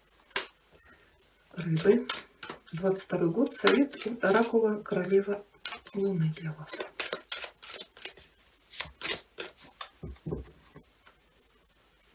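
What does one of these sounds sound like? Playing cards shuffle with soft, quick clicks.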